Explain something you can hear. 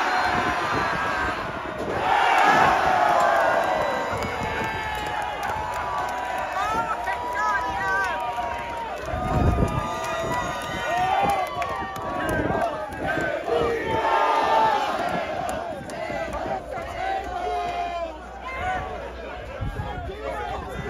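A large outdoor crowd cheers and shouts loudly all around.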